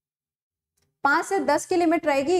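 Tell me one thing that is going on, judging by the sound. A young woman speaks clearly into a microphone.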